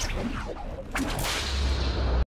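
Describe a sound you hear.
A whip cracks sharply.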